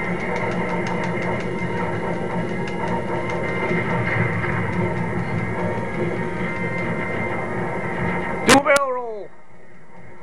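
Video game explosions boom and rumble through a television speaker.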